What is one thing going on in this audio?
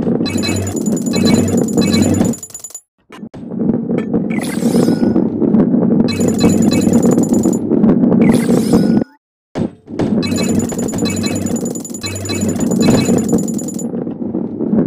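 Coins chime as they are picked up.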